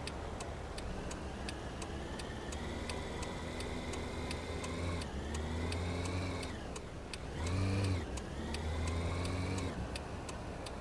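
A car engine revs up as the car accelerates.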